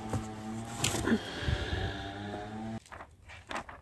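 Book pages flip and rustle.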